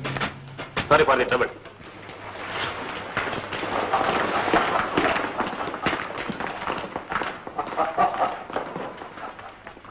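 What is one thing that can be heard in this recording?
Several pairs of boots shuffle and stamp across a hard floor in a scuffle.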